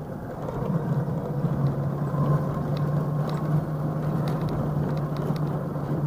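An electric scooter motor hums steadily while riding.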